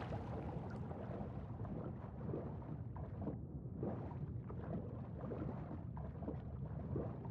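Water rumbles and bubbles deep underwater.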